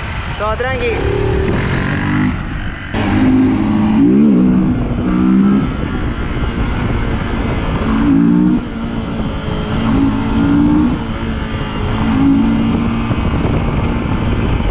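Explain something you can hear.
Wind rushes past, loud and buffeting.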